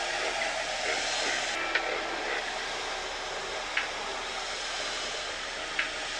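A vacuum cleaner hums steadily across the floor.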